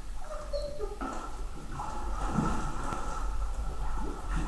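Water splashes as a large dog swims in a pool.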